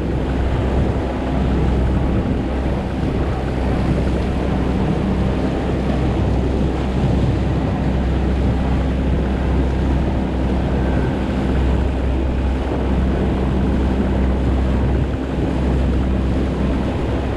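Water splashes and rushes against the boat's hull.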